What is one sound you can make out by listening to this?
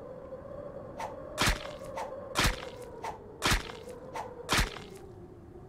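Gunshots crack in quick, separate bursts.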